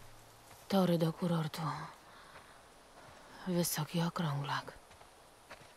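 A young man talks briefly into a microphone.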